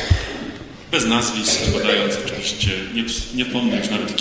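A man reads out through a microphone and loudspeaker.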